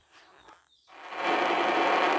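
A spaceship engine roars loudly as it rushes along.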